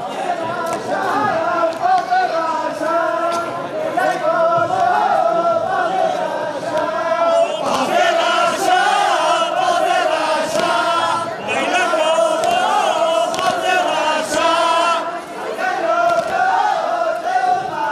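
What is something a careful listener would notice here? Loud music with a wavering melody plays through loudspeakers in a large hall.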